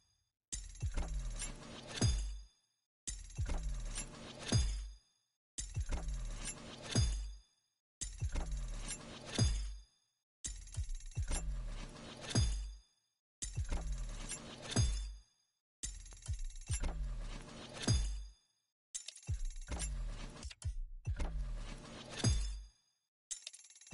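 A game menu gives short electronic clicks as the selection moves.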